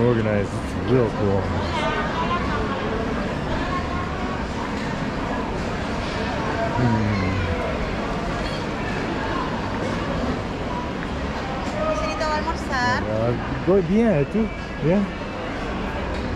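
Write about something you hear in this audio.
A crowd of men and women chatter steadily nearby, with lively voices rising now and then.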